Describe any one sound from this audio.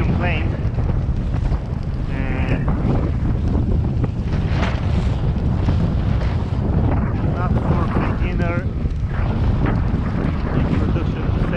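Strong wind buffets loudly throughout, outdoors on open water.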